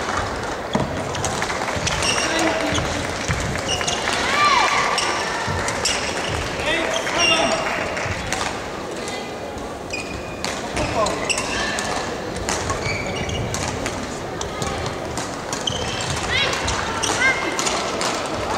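Shoes squeak sharply on a hall floor.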